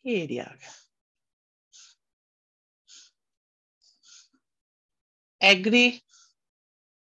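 A young woman speaks calmly through a microphone, in short bursts.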